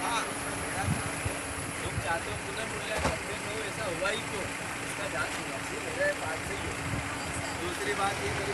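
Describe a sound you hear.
A crowd of men shouts and talks over one another close by, outdoors.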